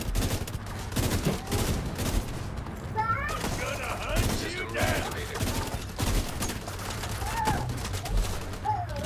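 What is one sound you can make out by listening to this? Rapid gunfire crackles and bangs in bursts.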